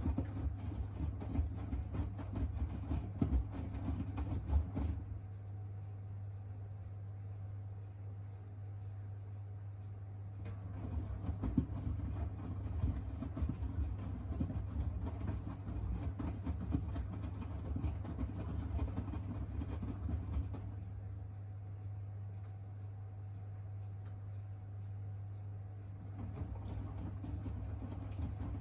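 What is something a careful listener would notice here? Wet laundry sloshes and thumps inside a turning washing machine drum, in bursts with pauses between them.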